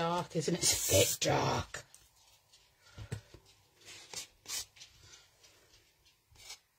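Paper tape rustles and crinkles as a hand presses it down.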